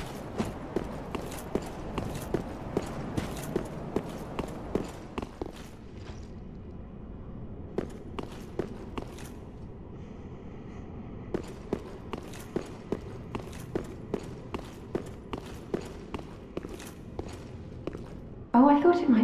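Armoured footsteps clank rhythmically on stone.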